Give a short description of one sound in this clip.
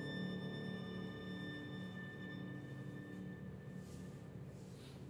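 A violin sustains a final note that fades.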